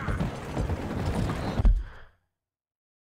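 Wagon wheels rumble over wooden planks.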